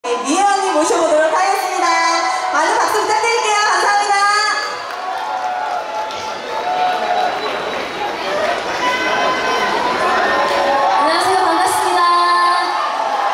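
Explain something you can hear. A young woman sings into a microphone over loudspeakers.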